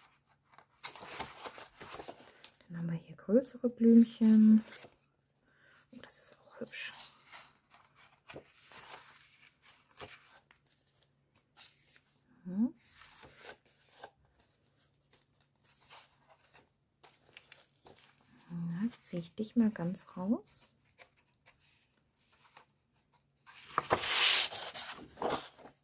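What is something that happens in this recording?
Sheets of thick paper rustle and flap as they are leafed through.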